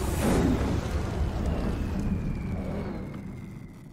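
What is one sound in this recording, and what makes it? A huge explosion roars and rumbles.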